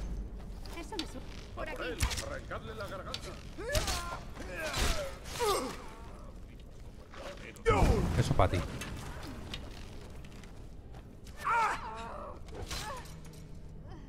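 A man talks with animation into a microphone, heard close up.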